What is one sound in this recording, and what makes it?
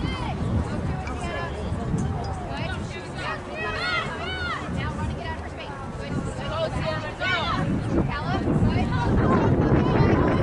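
Young women shout and call out across an open field.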